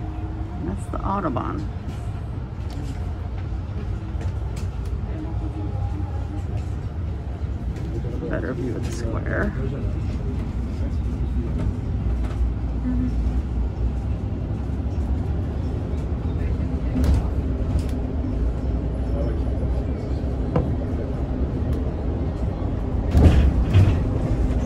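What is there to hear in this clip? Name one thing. The bus rattles and knocks over bumps in the road.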